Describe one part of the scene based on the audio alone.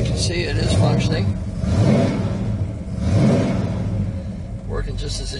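A car engine rumbles and revs in bursts.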